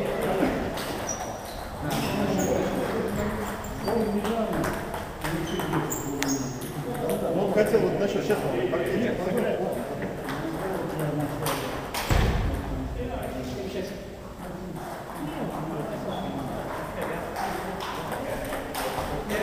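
Table tennis balls click and bounce on tables throughout a large echoing hall.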